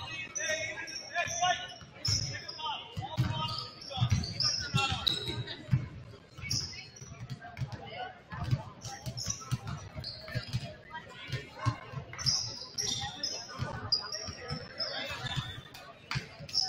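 A crowd murmurs and chatters in the background.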